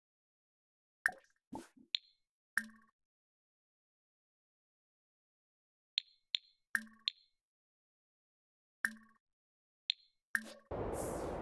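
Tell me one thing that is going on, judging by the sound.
Soft interface clicks sound as menu options are picked.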